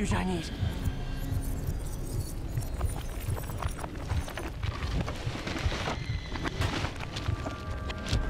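A deep rumble roars as debris tumbles through the air.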